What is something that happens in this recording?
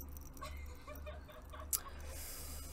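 Metal weights clatter onto a hard floor.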